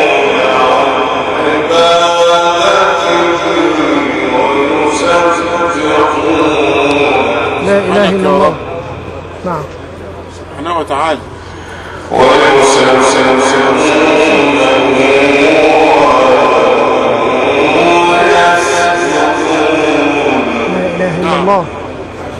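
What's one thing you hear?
A middle-aged man chants in a long, melodic voice through a microphone and loudspeakers.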